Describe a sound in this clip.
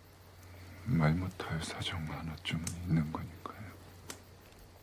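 A man speaks quietly and slowly.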